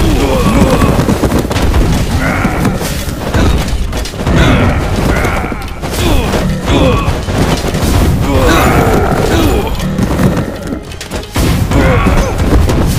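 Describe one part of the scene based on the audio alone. Magic blasts crackle and boom.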